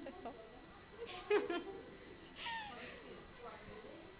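Young women laugh close by.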